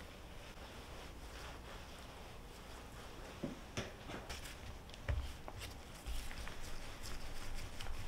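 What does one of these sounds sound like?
A wooden rolling pin rolls over dough on a board.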